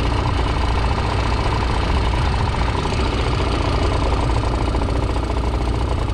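Small waves slap against an inflatable boat.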